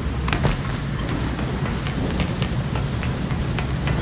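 Footsteps patter quickly on a hard rooftop.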